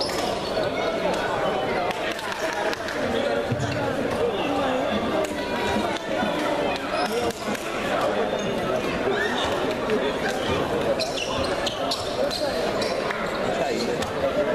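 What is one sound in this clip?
Many voices chatter and shout in a large echoing hall.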